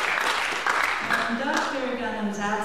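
An elderly woman speaks into a microphone.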